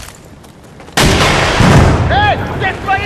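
Gunfire rings out in a short loud burst.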